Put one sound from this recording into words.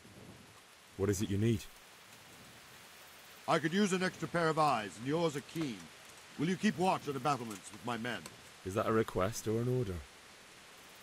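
A young man asks a question calmly.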